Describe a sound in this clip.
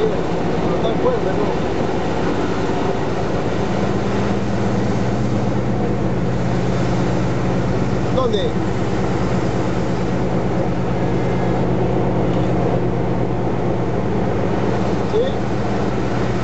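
A vehicle's engine hums steadily while driving.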